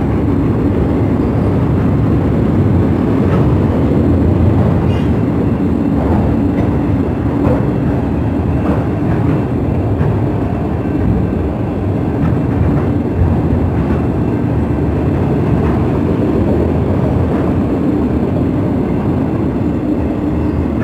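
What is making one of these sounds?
A long freight train rumbles steadily past up close.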